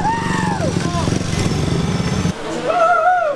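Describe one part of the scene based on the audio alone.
Motorcycle engines roar loudly.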